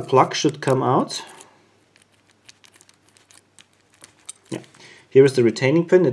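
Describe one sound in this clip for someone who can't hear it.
A key scrapes softly in a padlock.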